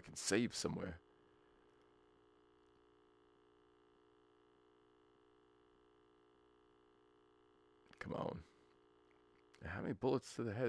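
A steady electronic test tone hums from a television.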